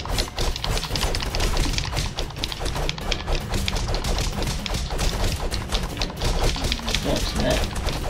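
Swords clash and strike in quick, repeated hits.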